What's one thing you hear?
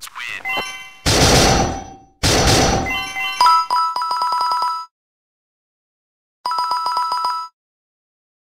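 Bright chimes ring out as rewards are counted.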